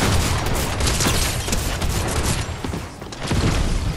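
Wooden walls splinter and break apart.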